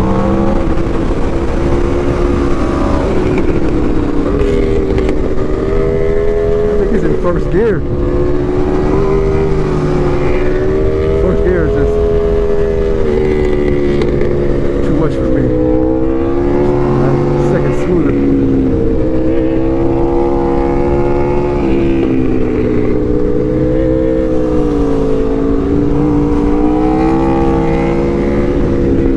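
A motorcycle engine hums close by, its pitch rising and falling as it shifts and accelerates.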